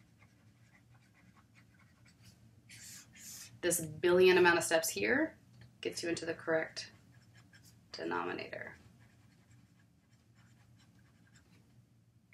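A marker squeaks on paper as it writes.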